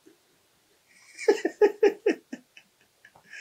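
A middle-aged man laughs heartily.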